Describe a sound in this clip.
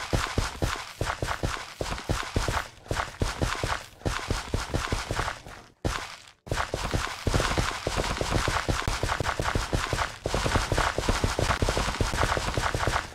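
Footsteps crunch steadily on grass.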